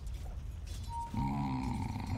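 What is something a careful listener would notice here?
Magic spells burst and whoosh in a fight.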